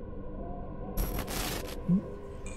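A sudden loud rushing whoosh bursts out and cuts off.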